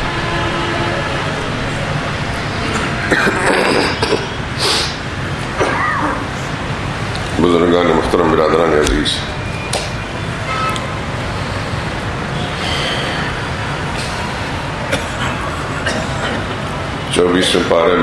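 An elderly man speaks slowly and solemnly into a microphone.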